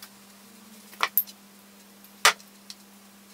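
A glass jar is set down with a knock on a wooden table.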